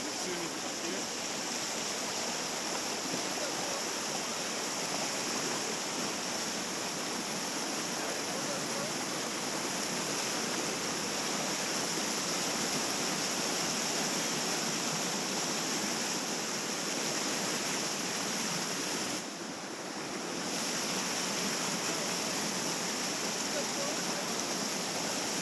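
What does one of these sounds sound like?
Whitewater rapids rush and roar close by.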